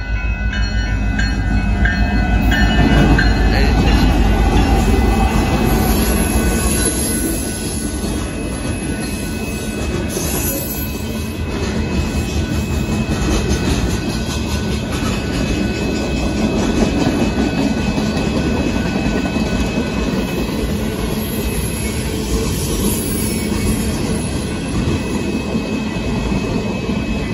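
A crossing bell rings steadily.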